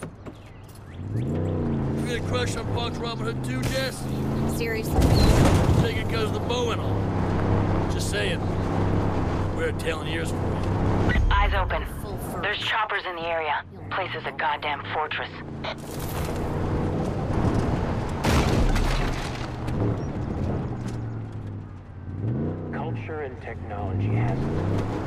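A car engine revs, rising and falling in pitch.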